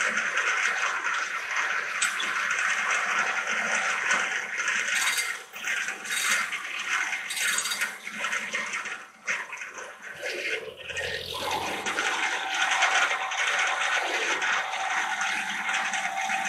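A large circular saw spins with a loud, steady whirring roar.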